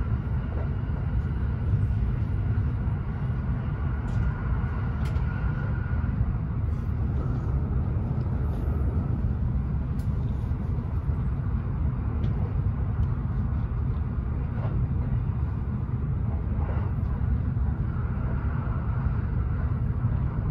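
Train wheels click and clatter over rail joints.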